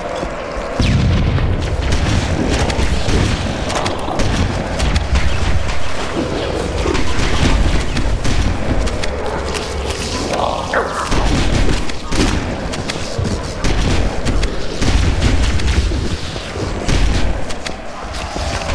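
A man speaks close to a headset microphone with animation.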